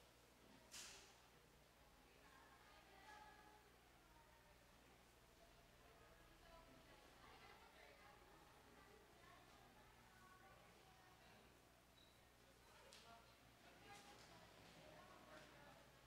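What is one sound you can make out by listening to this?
Men and women in an audience chat quietly in a large echoing hall.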